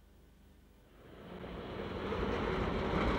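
Traffic rumbles by on a city street.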